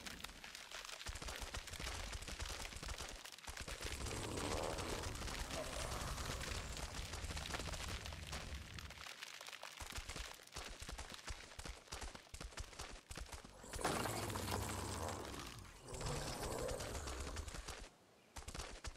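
Heavy footsteps of a large creature thud steadily.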